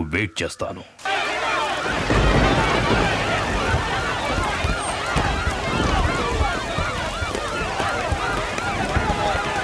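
A crowd shouts and clamours.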